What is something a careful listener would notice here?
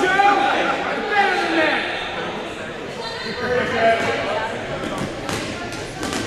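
A crowd of children and adults shouts and chatters in a large echoing gym.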